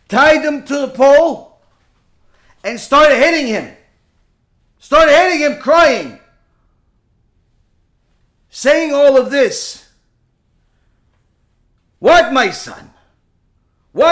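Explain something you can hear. A man speaks with animation into a nearby microphone, in short bursts with pauses.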